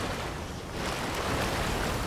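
A waterfall roars nearby.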